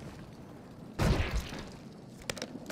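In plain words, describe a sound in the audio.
A rifle bolt clacks as the weapon is reloaded.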